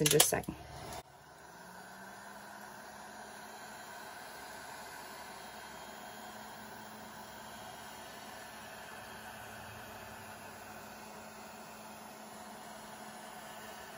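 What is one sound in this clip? A heat gun blows air with a steady whirring hum.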